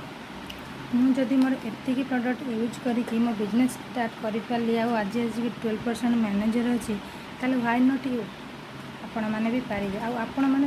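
A woman speaks close to the microphone, calmly explaining.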